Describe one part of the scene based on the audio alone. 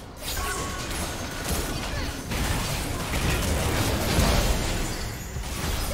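Magic spells crackle and boom in a busy fight.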